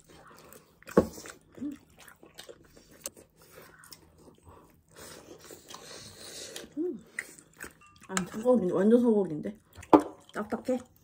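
Chopsticks and spoons clink against ceramic bowls.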